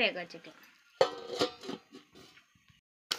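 A metal lid clinks down onto a metal pan.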